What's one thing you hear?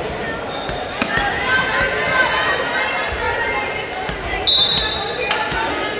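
A ball thumps off a player's hands.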